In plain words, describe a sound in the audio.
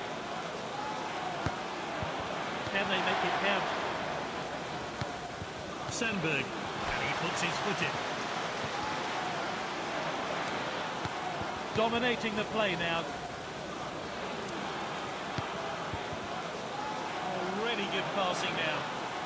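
A large stadium crowd murmurs and roars steadily.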